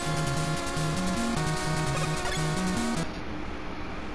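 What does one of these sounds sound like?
Beeping chiptune video game music plays.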